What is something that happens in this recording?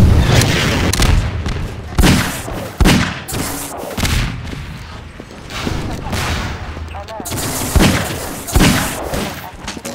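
A pistol fires several sharp shots.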